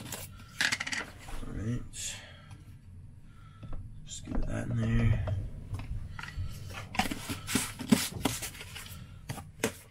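A plastic tub lid clicks and rattles.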